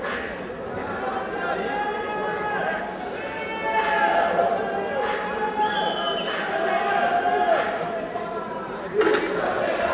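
Men shout loudly from nearby in an echoing hall.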